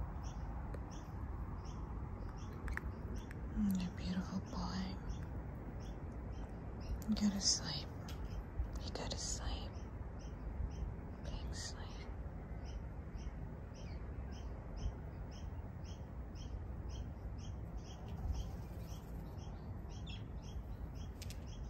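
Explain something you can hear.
A bird gives soft short calls close by.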